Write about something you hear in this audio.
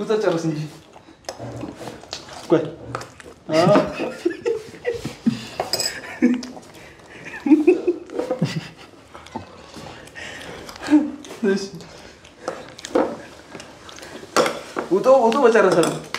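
Spoons clink against bowls.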